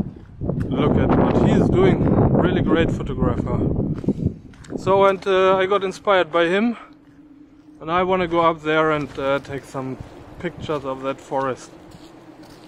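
A man speaks calmly, close to the microphone, outdoors in wind.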